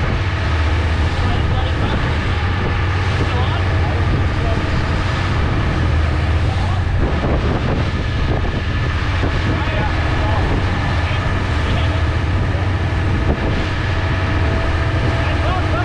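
Water churns and splashes in the boat's wake.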